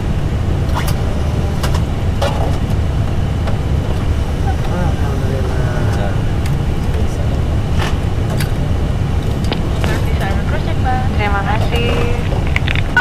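A low, steady engine rumble fills an aircraft cockpit.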